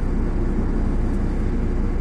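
A car passes close by.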